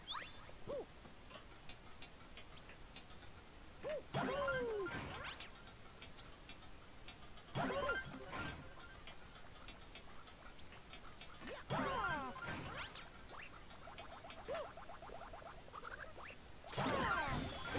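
A video game character jumps with short springy sound effects.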